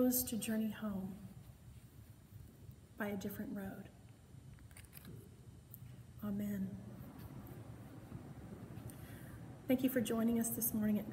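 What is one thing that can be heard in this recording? A woman speaks calmly and warmly, close to the microphone, with pauses.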